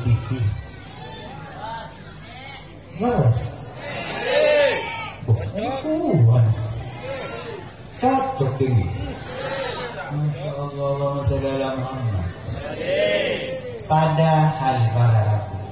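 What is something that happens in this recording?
A man sings expressively into a microphone, heard through loudspeakers.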